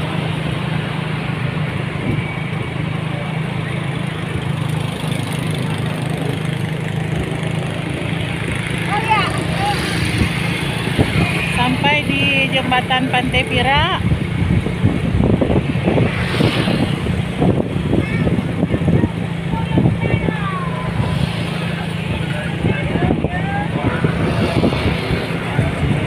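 A motorcycle engine hums steadily close by while riding.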